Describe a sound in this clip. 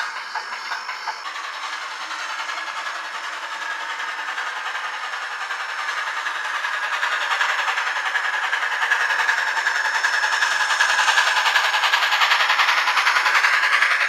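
Wheels click rapidly over the rail joints.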